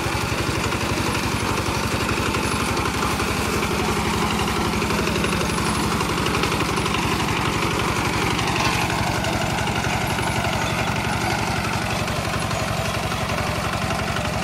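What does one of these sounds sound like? A single-cylinder diesel engine on a two-wheel walking tractor chugs as the tractor moves forward.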